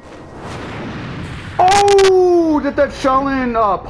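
Blows and scuffles thud during a fight.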